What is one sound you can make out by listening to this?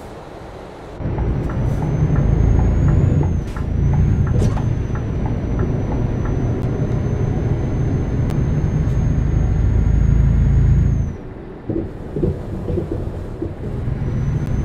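A truck engine rumbles low and steady, then quiets as the truck slows.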